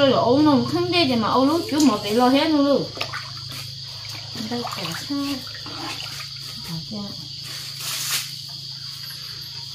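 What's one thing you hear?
Water splashes as a bowl scoops and pours it in a large pot.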